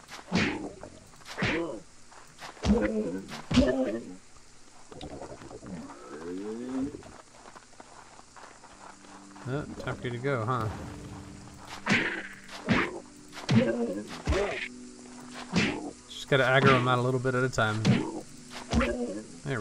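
Sword blows strike a large creature again and again.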